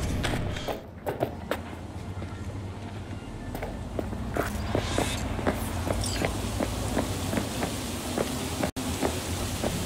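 City traffic rumbles outdoors.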